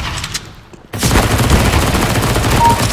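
Rapid gunshots ring out from an automatic weapon.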